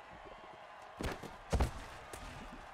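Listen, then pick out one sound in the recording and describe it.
Football players collide with a heavy thud.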